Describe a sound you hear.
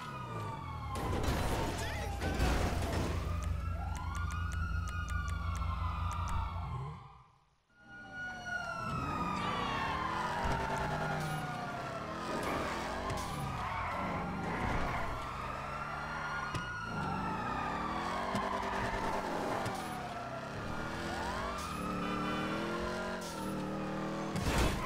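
A car engine revs hard, rising and falling in pitch as the gears change.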